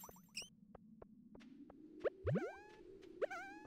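Footsteps tap softly and quickly on the ground.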